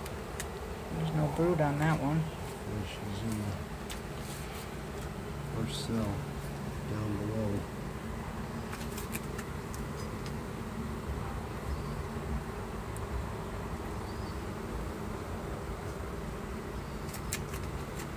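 Bees buzz steadily.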